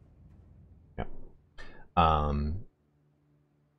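A man speaks into a microphone with animation, close by.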